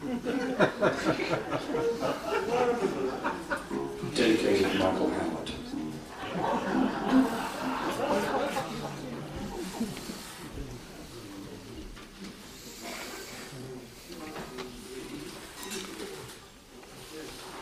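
A tuba plays a deep, bouncing bass line.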